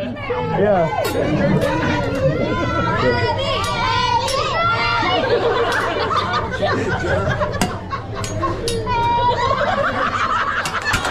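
Metal spatulas clink and scrape on a hot griddle.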